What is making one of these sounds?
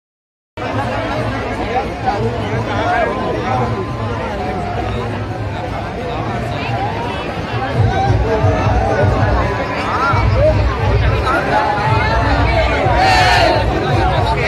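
A large outdoor crowd chatters and shouts loudly all around.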